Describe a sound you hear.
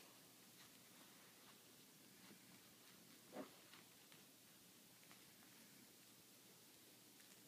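A baby pats and rustles a plush toy.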